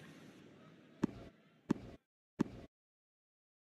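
A tennis ball bounces on a hard court before a serve.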